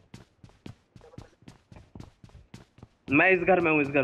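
Quick footsteps tap on a hard floor.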